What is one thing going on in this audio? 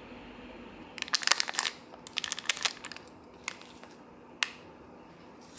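A plastic packet crinkles in a hand.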